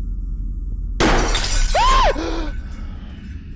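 A young man shouts in alarm into a close microphone.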